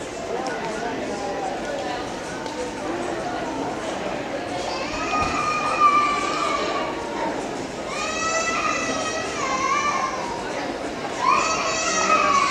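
Footsteps of passers-by tap on a paved street.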